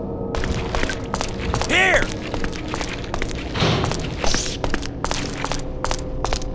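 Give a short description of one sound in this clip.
Footsteps thud on a hard floor in an echoing corridor.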